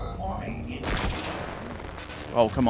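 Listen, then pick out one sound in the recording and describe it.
A stun gun fires a crackling electric blast.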